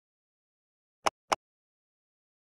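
Short clicks sound from a menu.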